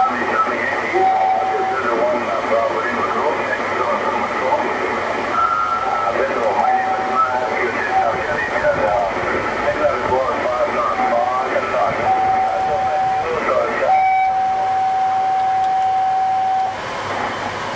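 A steady whistling tone sounds from a radio receiver in short and long bursts.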